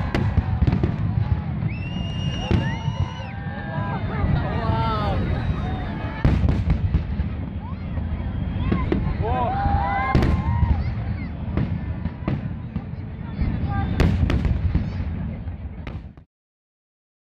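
Fireworks burst with loud booming bangs.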